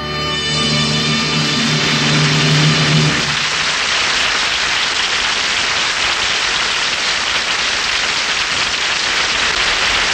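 Static hisses steadily from an old radio.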